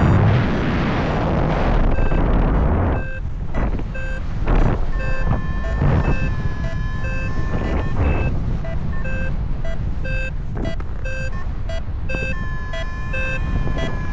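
Wind rushes and buffets loudly in open air, easing after a few seconds.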